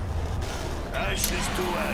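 A creature bursts into crackling flames.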